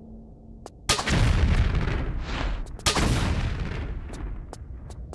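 Flames burst with a loud roar.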